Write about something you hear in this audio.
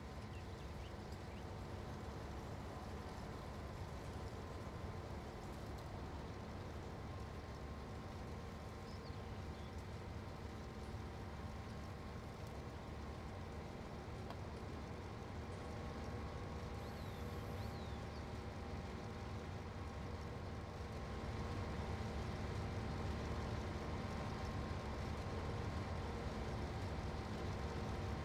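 Grain crop rustles as a combine harvester cuts it.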